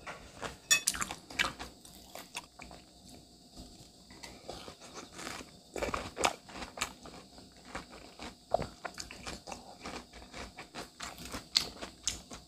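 A fork clinks against a ceramic bowl.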